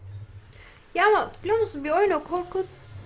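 A young woman talks close to a microphone, with animation.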